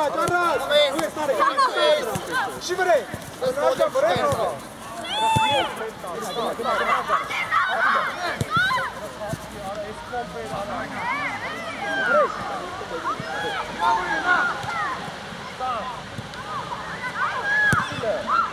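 Young players shout and call to each other across an open outdoor pitch.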